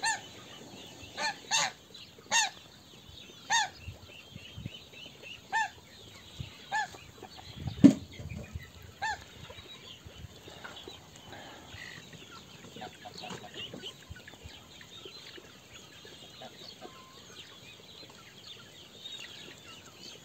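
Ducks peck and shuffle on dry ground.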